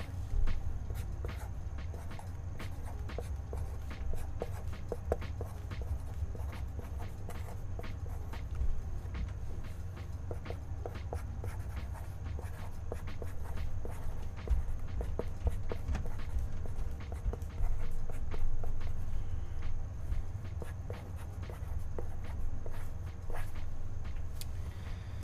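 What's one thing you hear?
A felt marker squeaks and scratches across paper.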